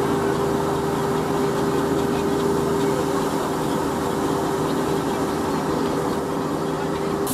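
A steam engine runs with a steady, rumbling chug.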